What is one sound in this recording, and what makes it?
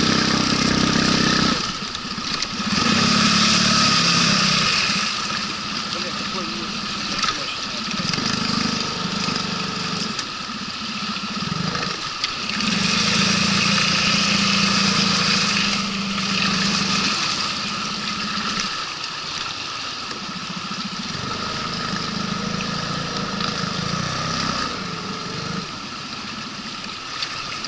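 An outboard motor hums steadily up close, its pitch rising and falling.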